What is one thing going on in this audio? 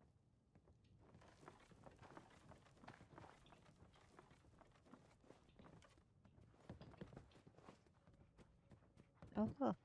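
Footsteps crunch on debris.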